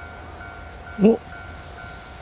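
A train horn gives a short blast.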